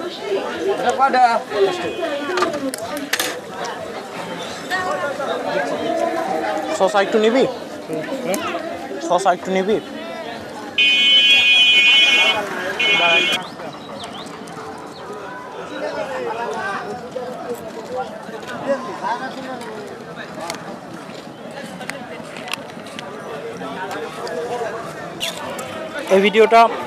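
A man talks close by in a lively way.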